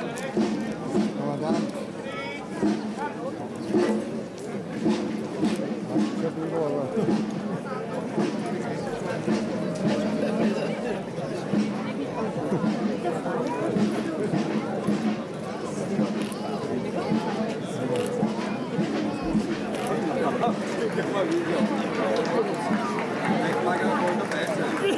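Many feet march on a paved street.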